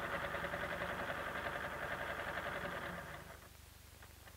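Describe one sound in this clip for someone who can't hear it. An electric sewing machine runs, stitching.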